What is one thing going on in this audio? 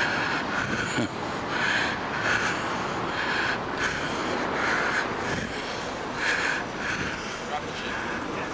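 Footsteps scuff on pavement close by.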